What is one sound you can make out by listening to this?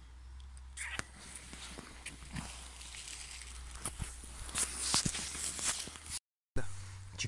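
Dry leaves rustle and crackle close by.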